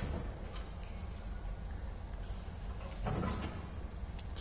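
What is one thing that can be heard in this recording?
A metal window latch clicks and creaks open.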